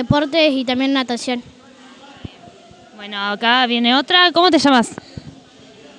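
Children shout and chatter in a large echoing hall.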